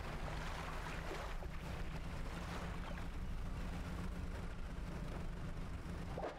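Water splashes around a moving boat.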